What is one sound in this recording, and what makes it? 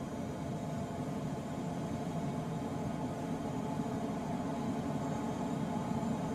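Wind rushes steadily over a glider's canopy.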